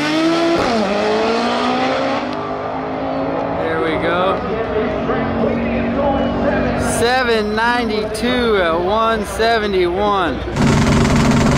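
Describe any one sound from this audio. A race car engine roars in the distance as the car speeds away.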